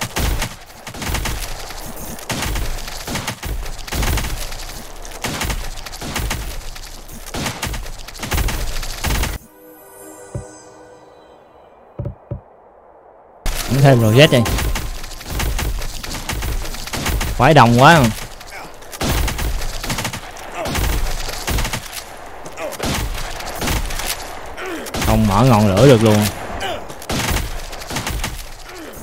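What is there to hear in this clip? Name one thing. Rapid electronic shooting and hit effects crackle and pop.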